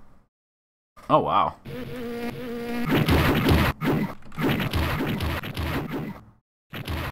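Upbeat arcade game music plays.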